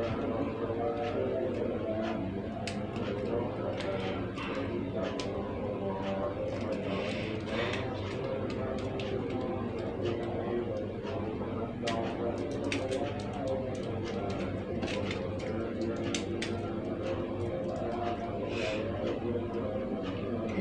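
Small plastic bricks click and snap together in someone's hands.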